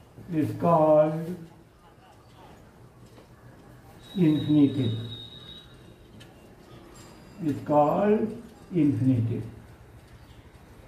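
An elderly man speaks slowly and calmly, in short phrases with pauses.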